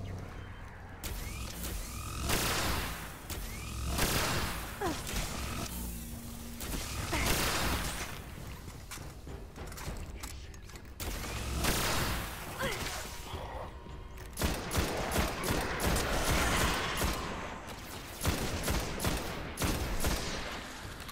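Rifle shots fire in bursts.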